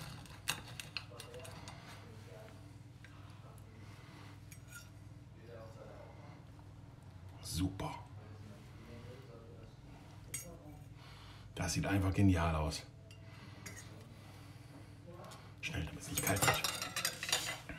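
A fork and knife clink and scrape against a ceramic plate.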